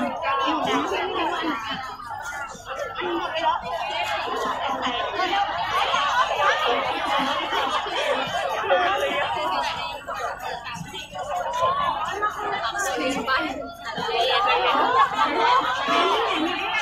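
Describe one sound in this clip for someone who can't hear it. A crowd of young women chatter and call out close by.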